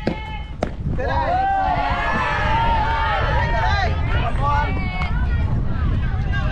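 A crowd of young women cheer and shout excitedly from close by.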